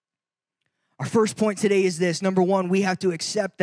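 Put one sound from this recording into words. A man speaks calmly into a microphone, heard through a loudspeaker system.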